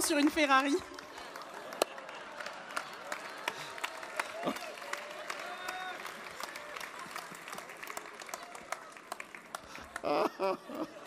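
A large audience laughs and murmurs.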